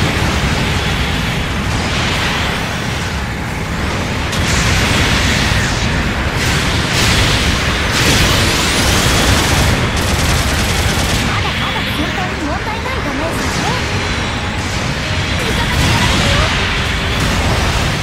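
Beam weapons and explosions blast in bursts.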